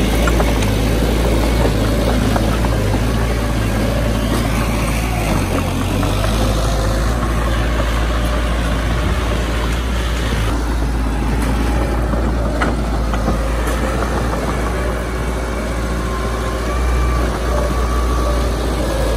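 Loose soil scrapes and crunches under a bulldozer blade.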